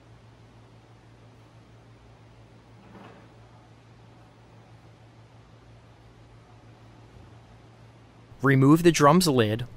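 An electric drum lifter hums steadily.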